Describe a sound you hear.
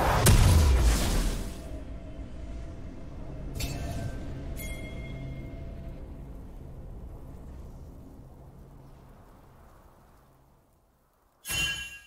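A deep magical blast booms and slowly rumbles away.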